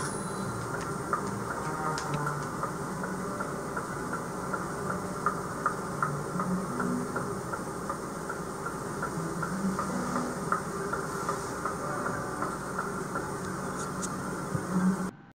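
Footsteps tap quickly on a wooden floor.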